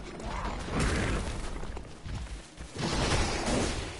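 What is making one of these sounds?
A heavy weapon swings and strikes.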